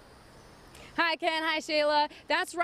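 A young woman speaks brightly into a microphone.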